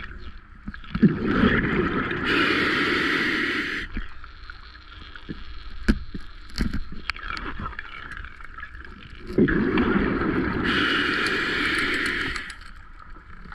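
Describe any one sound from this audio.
Bubbles from a diver's exhaled breath rush and gurgle loudly underwater.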